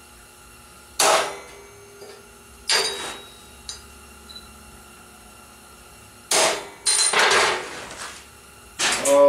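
Metal rods clank and rattle against each other.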